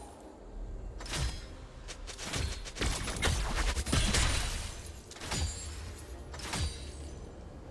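Magic blasts and impacts burst and crackle in a fast video game fight.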